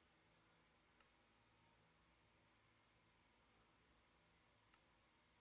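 A game menu gives short soft clicks.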